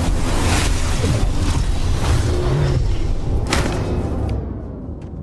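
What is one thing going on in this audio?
A deep, rumbling whoosh roars and then fades.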